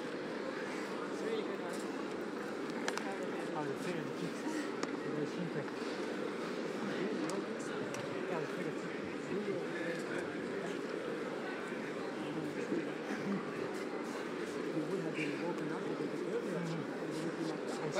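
A large crowd murmurs and cheers steadily in a big echoing hall.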